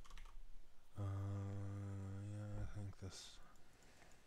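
A man speaks close to a microphone, drawing out a long hesitant hum.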